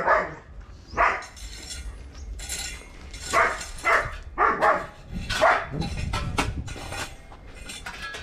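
A rake scrapes over gravel.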